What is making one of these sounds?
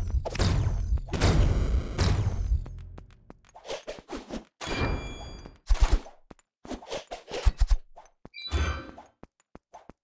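Video game crates smash and break apart with heavy thuds.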